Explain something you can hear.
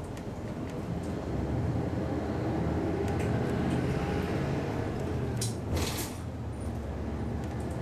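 A bus engine revs up as the bus pulls away.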